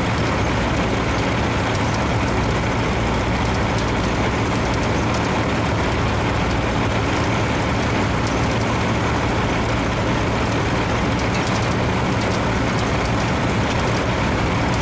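A harvester conveyor rattles and clanks steadily.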